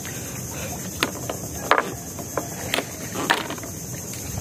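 Clam shells clack against each other.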